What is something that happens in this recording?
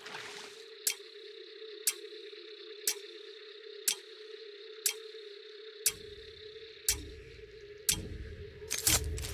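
A countdown timer ticks sharply once every second.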